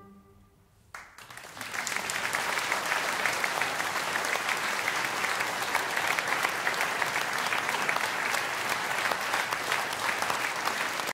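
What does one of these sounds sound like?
An audience applauds loudly in a room.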